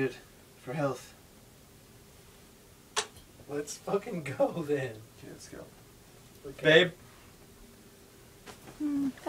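Young men talk and laugh casually nearby.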